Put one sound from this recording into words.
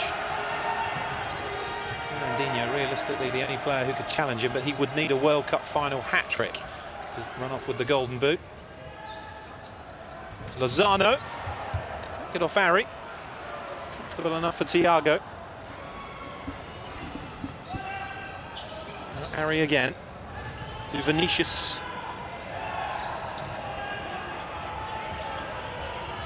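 A large crowd roars and chants in an echoing arena.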